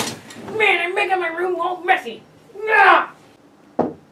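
A young man shouts with animation close by.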